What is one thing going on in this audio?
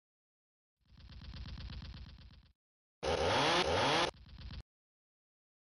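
A chainsaw buzzes.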